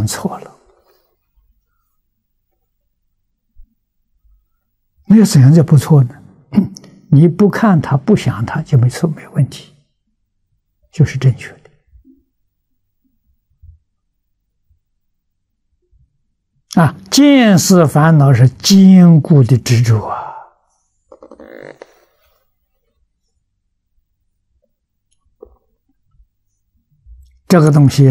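An elderly man speaks calmly and slowly into a close microphone, with long pauses.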